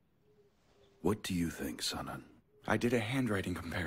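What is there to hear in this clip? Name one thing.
A man speaks calmly and firmly.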